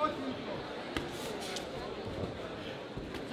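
Gloved punches thud against a body.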